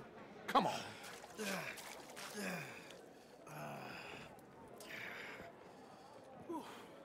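A man groans and breathes heavily close by.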